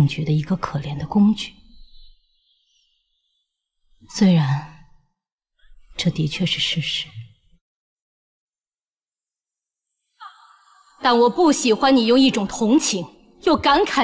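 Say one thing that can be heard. A young woman speaks slowly and sorrowfully, close by.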